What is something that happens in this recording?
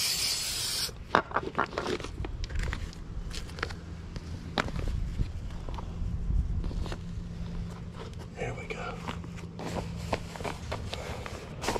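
Plastic sheeting crinkles and rustles as it is handled.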